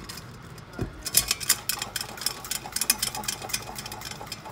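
A metal bottle is shaken, its contents sloshing and rattling.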